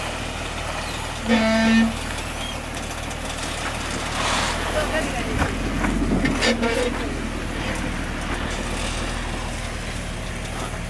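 An engine rumbles low and steady.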